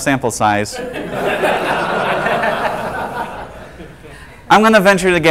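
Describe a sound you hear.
A small audience laughs.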